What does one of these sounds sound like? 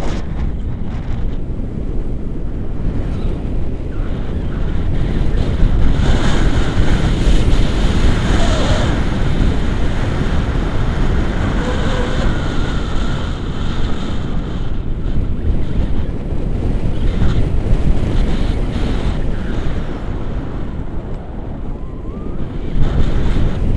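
Strong wind rushes and buffets against a microphone throughout.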